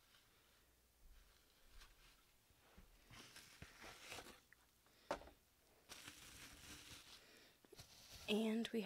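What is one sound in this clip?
Paper shreds rustle and crinkle as they are handled.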